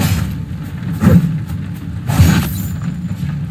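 A blade slashes sharply a few times.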